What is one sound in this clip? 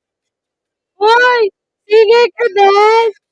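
A young woman speaks loudly and with animation into a microphone.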